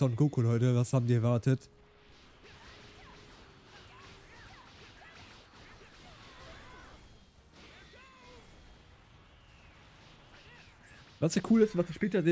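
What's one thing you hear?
Explosions boom and crackle during a fight in a video game.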